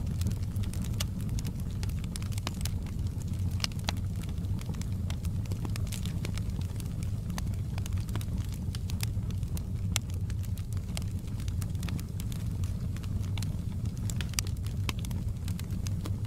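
Logs crackle and pop in a fire.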